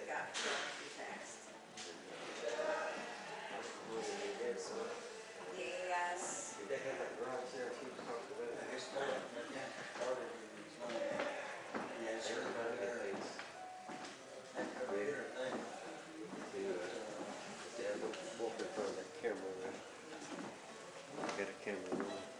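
A man talks calmly into a microphone in an echoing hall.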